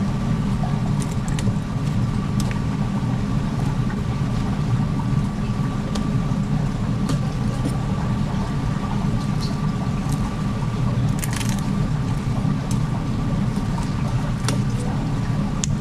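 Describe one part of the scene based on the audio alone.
A knife taps against a cutting board.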